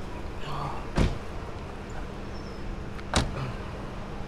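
Car doors thud shut.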